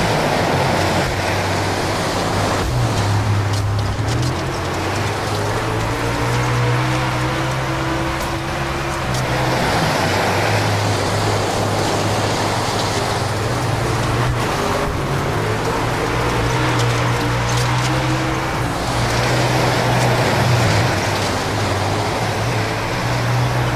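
A race car engine roars loudly, its pitch rising and falling as it shifts gears.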